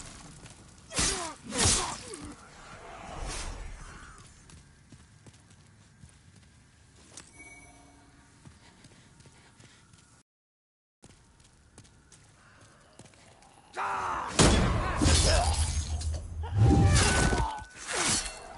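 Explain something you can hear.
Swords clash with sharp metallic strikes.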